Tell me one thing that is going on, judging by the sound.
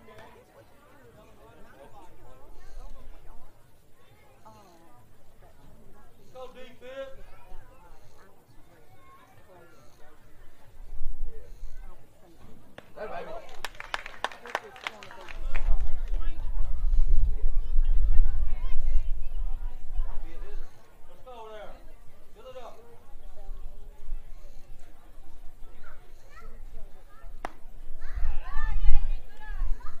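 Young men shout and call out from a distance.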